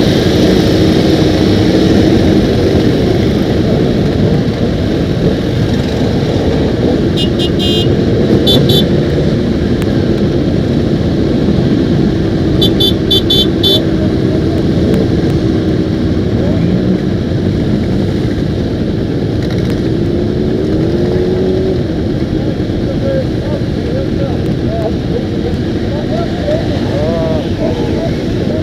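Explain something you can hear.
Motorcycle engines idle and rumble close by.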